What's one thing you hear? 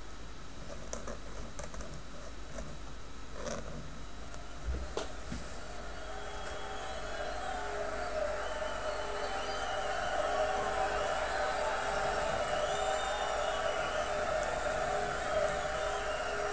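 A pen nib scratches softly on paper.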